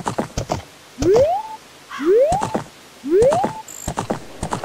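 A short rising whistle sounds three times as a horse is spurred on.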